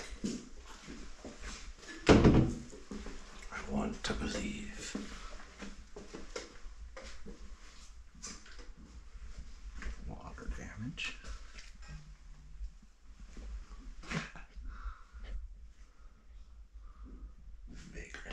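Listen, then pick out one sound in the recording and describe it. A man talks calmly close by, in a room that echoes.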